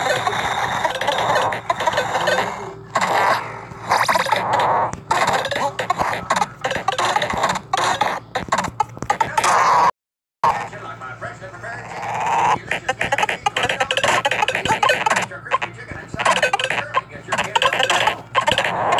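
Electronic game sounds blip and zap rapidly.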